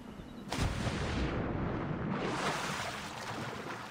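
Water splashes loudly as someone plunges in from above.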